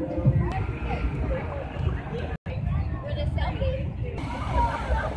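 A crowd chatters nearby outdoors.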